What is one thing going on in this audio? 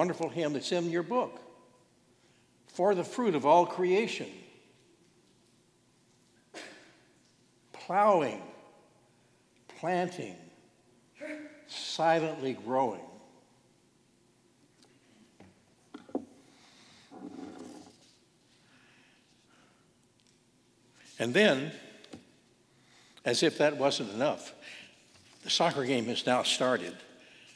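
An elderly man speaks slowly and calmly into a microphone in a large echoing hall.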